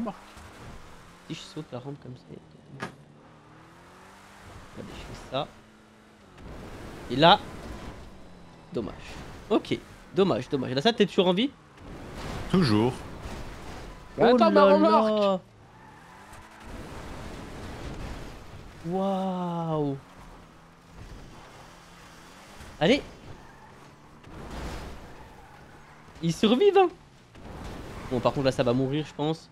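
A car engine revs and roars as the car speeds over rough ground.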